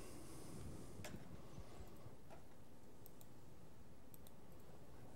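A computer mouse clicks softly.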